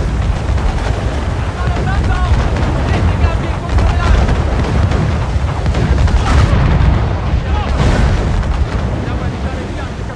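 Wind roars loudly in a storm.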